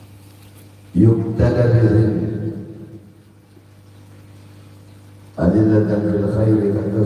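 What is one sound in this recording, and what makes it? A man chants into a microphone, heard loud through a loudspeaker in an echoing room.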